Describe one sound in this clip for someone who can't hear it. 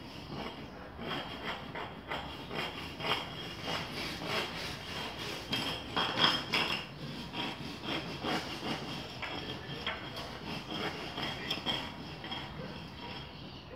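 A blade scrapes back and forth rapidly over a plastic sheet on a hard floor.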